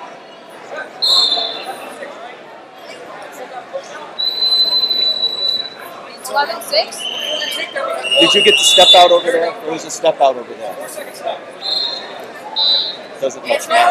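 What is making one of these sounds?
Whistles blow sharply in a large hall.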